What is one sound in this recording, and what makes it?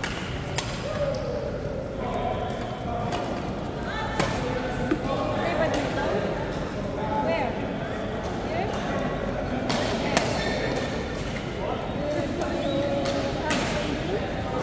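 Rackets hit a shuttlecock with sharp pops in an echoing hall.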